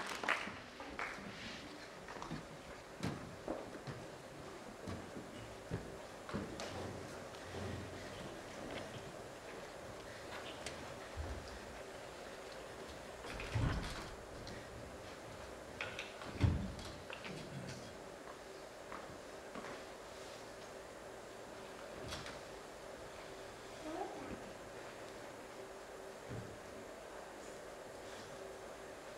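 A piano plays softly in a large hall.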